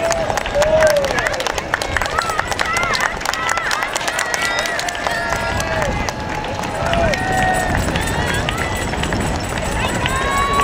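Spectators clap their hands rapidly.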